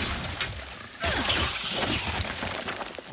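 A heavy explosion bursts and rumbles.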